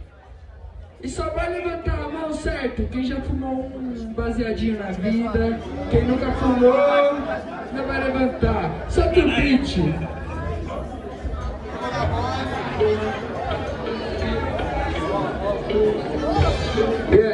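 A young man raps forcefully through a microphone over a loudspeaker.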